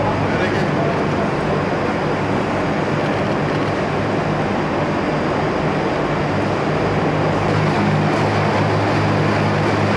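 Machinery hums steadily in a large hall.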